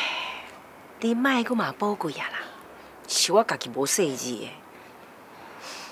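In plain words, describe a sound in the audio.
A middle-aged woman speaks softly and earnestly, close by.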